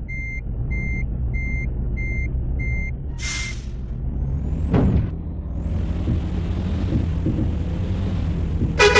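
A truck engine drones while driving.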